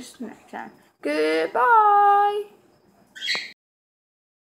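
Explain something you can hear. A young boy talks close to the microphone with animation.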